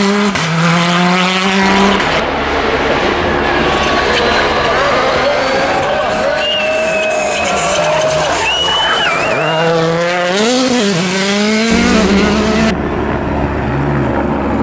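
A rally car engine roars and revs hard, rising and falling in pitch.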